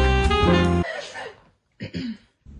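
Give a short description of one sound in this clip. A teenage girl laughs close by.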